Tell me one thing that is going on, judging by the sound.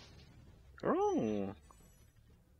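A bright, rising and falling chime rings out briefly.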